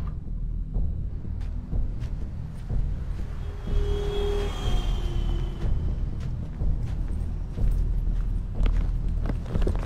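Footsteps walk slowly on wet pavement outdoors.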